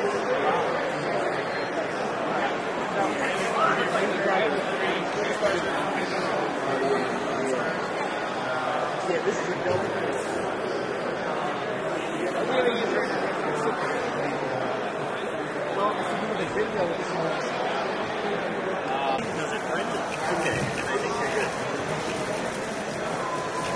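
A crowd of men and women chatters all around in a large echoing hall.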